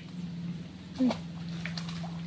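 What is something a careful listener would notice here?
A small object plops into still water.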